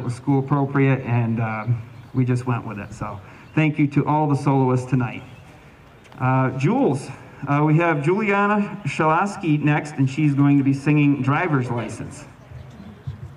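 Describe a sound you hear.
A man speaks with animation to a crowd outdoors.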